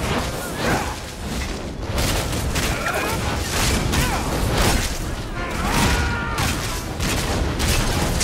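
Magic blasts burst and crackle in sharp bursts.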